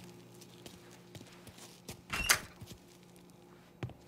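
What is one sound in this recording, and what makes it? A door creaks open.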